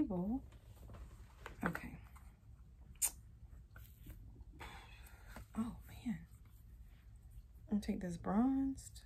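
A young woman talks calmly and close to the microphone, in short phrases.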